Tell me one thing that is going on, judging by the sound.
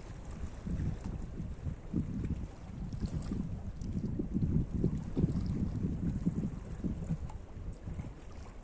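Gentle waves lap and splash against rocks close by.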